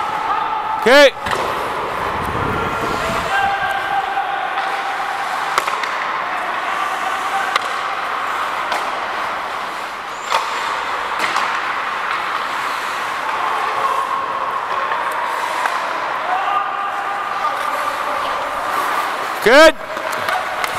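Sticks clack against a puck.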